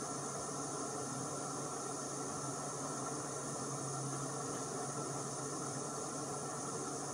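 A small gas burner hisses and roars steadily.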